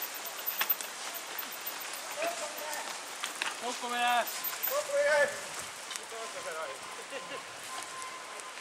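Bicycle tyres roll and crunch over a dirt trail.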